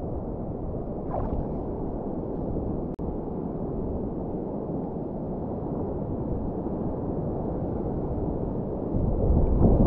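Sea water sloshes and laps close by, with a low muffled rumble.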